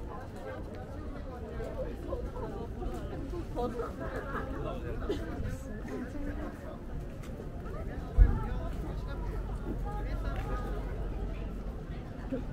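Young men and women chatter nearby as they walk past.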